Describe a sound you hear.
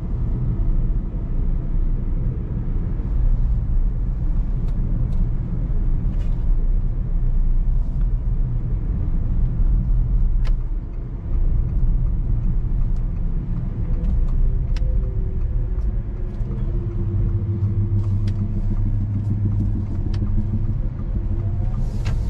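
A car engine hums steadily from inside the cabin.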